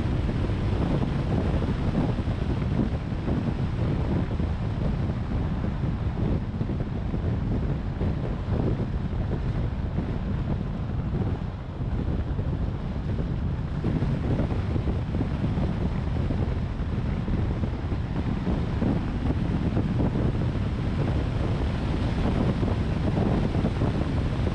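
Wind rushes past a moving car.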